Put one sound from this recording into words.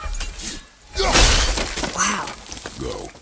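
A wooden barrier crashes and splinters apart.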